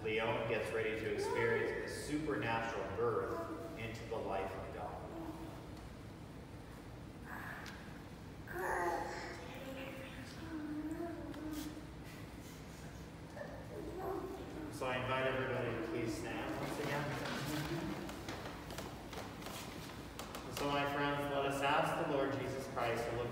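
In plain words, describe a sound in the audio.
An elderly man speaks calmly in a room with slight echo.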